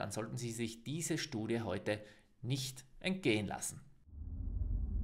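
A young man speaks calmly and clearly into a close microphone.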